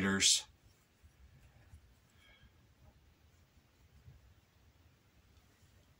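A metal belt buckle clinks softly as it is handled.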